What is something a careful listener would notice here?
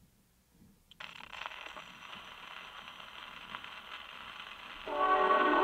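An old gramophone record crackles and hisses.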